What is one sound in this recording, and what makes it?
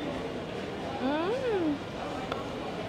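A young woman hums with pleasure while eating.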